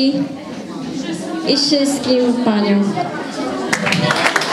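A young girl speaks into a microphone in a clear voice.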